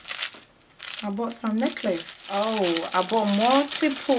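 A plastic bag crinkles in someone's hands.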